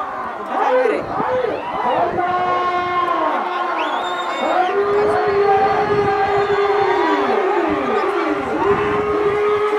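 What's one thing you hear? A large crowd shouts and cheers loudly outdoors.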